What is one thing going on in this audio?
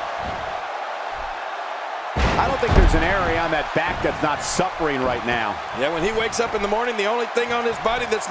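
A large arena crowd roars and cheers.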